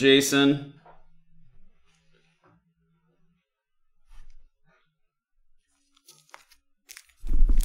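Cards and a foil wrapper rustle as hands handle them.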